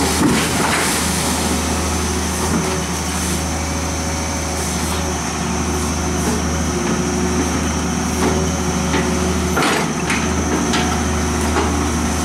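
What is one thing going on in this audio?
Water rushes and churns as an excavator bucket sweeps through it.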